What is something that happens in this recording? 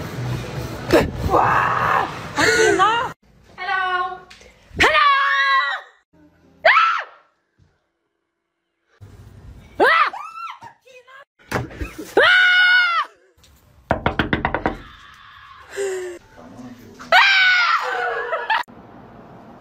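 A young woman screams in fright.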